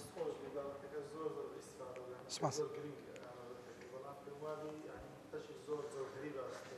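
A man speaks calmly and steadily close to a microphone.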